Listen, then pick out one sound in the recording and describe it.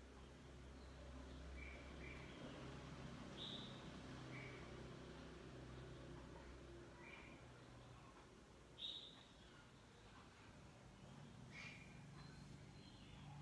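A television plays faintly across the room.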